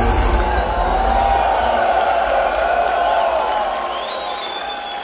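An electric guitar rings out loudly and slowly fades.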